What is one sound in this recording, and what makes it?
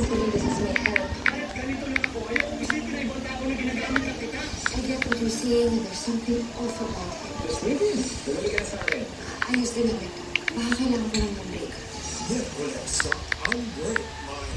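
Keys tap rapidly on a touchscreen keyboard.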